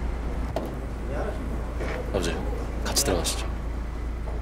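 A young man speaks up close, briefly and politely.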